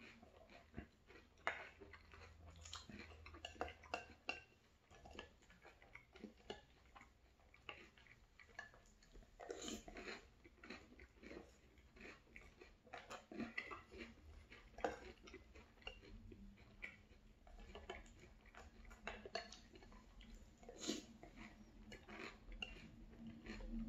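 A man crunches and chews cereal close to a microphone.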